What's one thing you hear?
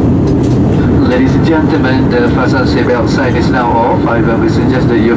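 A crowd of passengers chatters and cheers in a cabin.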